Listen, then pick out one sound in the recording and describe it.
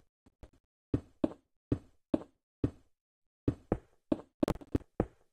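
Blocks are placed one after another with short, soft thuds.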